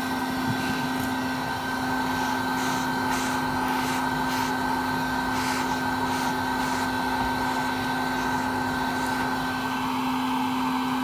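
A swarm of honeybees buzzes steadily up close.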